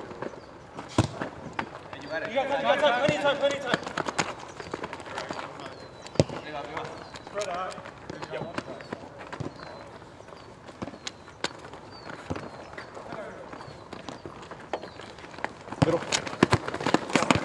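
A ball is kicked with sharp thuds outdoors.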